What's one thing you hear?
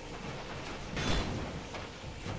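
A sword strikes a giant scorpion with a heavy thud.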